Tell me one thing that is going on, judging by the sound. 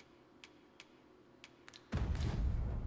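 Soft menu clicks tick a few times.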